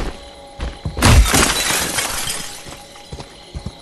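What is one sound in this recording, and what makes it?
Glass shatters as a window is smashed.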